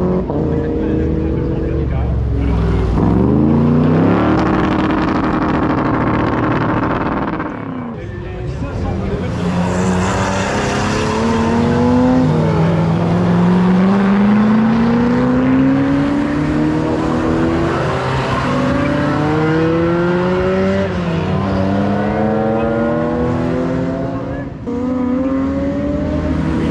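Sports car engines roar and rev hard as the cars accelerate past, shifting up through the gears.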